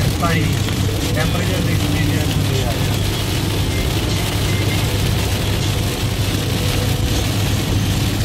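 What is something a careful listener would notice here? Heavy rain pounds on a car windscreen.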